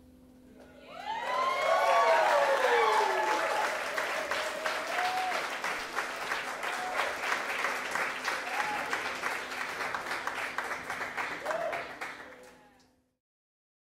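A crowd claps loudly.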